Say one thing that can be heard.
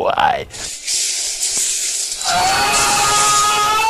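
Video game spell effects whoosh and crackle.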